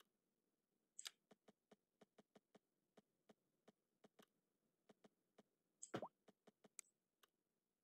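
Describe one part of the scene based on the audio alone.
Soft game interface clicks tick repeatedly.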